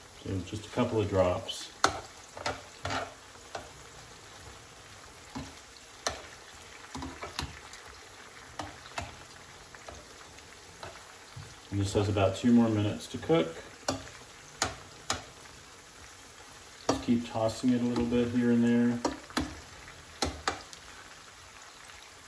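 Chiles sizzle in oil in a frying pan.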